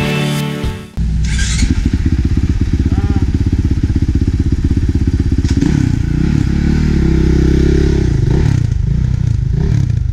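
A motorcycle engine idles and revs loudly close by.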